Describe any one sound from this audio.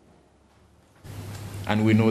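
An older man speaks into a microphone, heard through a loudspeaker in an echoing room.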